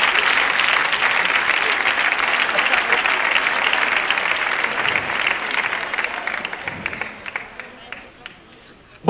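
A large audience applauds and cheers, then fades.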